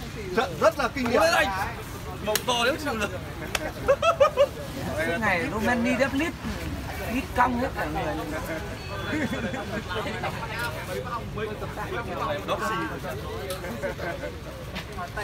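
Several men talk and call out with animation close by.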